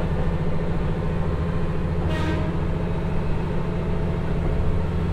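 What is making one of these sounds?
A diesel railcar engine rumbles steadily as the train rolls along.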